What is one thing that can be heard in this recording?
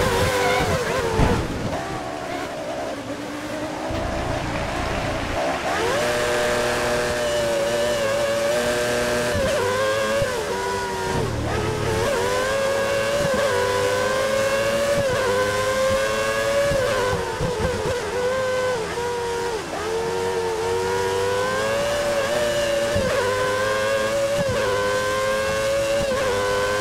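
A racing car engine whines at high revs, rising and falling as gears shift.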